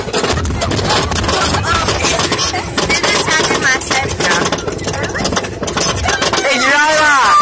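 Young riders talk and shout excitedly close by.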